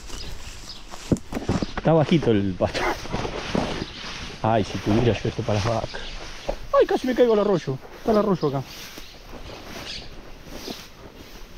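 Tall grass rustles and brushes close by.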